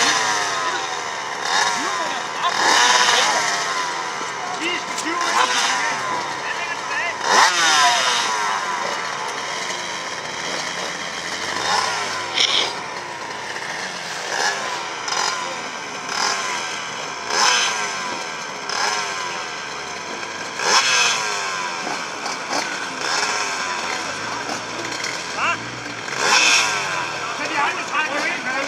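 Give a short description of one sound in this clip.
Several motorcycle engines idle and rev loudly and repeatedly outdoors.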